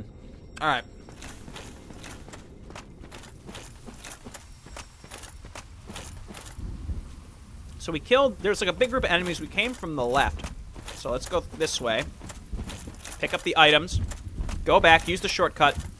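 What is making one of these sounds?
Heavy armoured footsteps thud and clink steadily on the ground.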